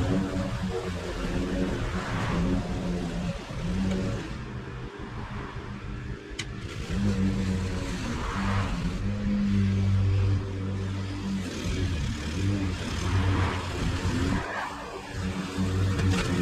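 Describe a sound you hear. A small petrol engine drones steadily and revs up and down.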